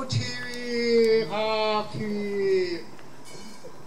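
A man chants a long, drawn-out call outdoors.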